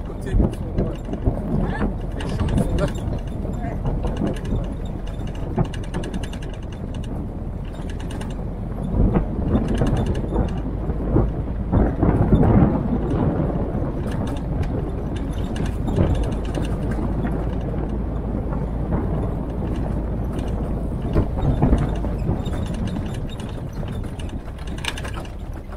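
Tyres crunch and rattle over a gravel track.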